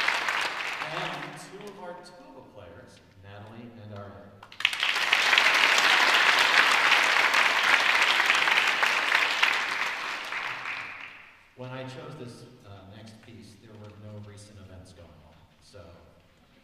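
A concert band of wind instruments plays in a large hall.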